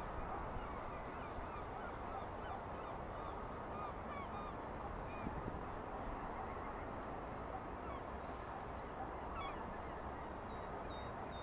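A wading bird's feet splash softly through shallow water.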